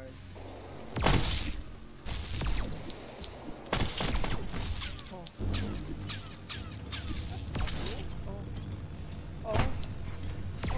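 Explosions boom and crackle in a game.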